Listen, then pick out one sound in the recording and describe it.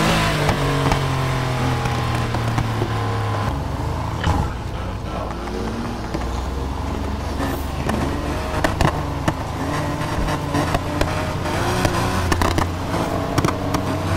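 A car exhaust pops and crackles.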